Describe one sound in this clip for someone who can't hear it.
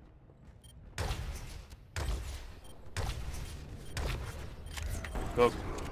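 A futuristic energy gun fires heavy booming shots at an even pace.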